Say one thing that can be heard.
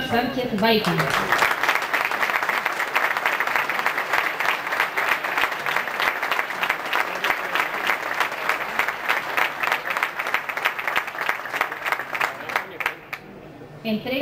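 A seated crowd applauds outdoors.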